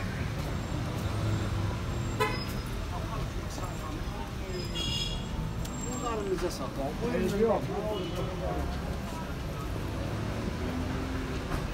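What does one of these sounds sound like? Street traffic rumbles steadily in the background outdoors.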